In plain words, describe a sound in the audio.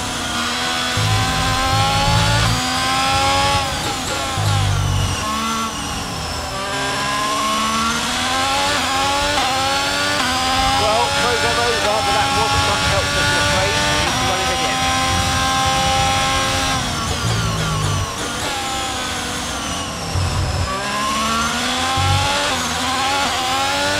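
A Formula One car's hybrid V6 engine screams at high revs, shifting up through the gears.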